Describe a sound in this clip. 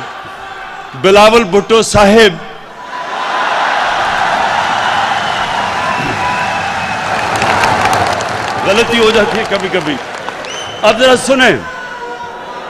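A crowd chants slogans loudly in unison.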